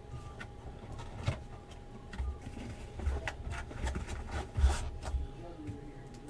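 A cardboard box scrapes and knocks on a table.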